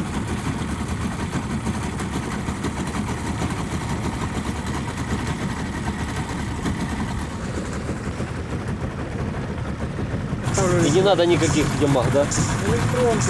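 An outboard motor drones steadily.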